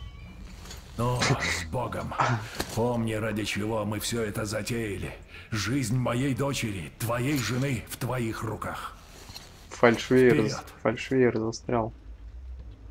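A middle-aged man speaks calmly and closely, explaining something.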